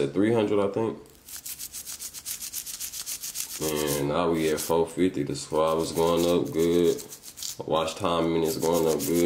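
A toothbrush scrubs rapidly against a small hard object.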